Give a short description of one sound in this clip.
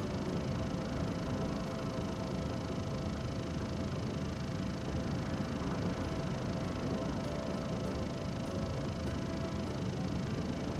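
Large windmill blades turn and whoosh.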